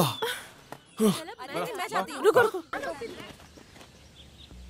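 Young women talk excitedly.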